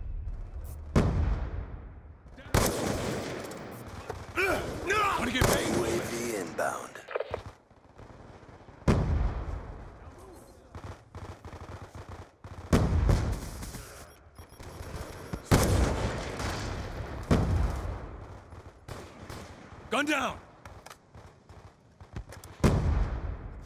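A rifle fires loud, sharp shots, several times.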